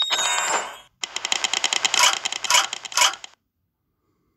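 A mobile game's ability roulette ticks as the choices spin.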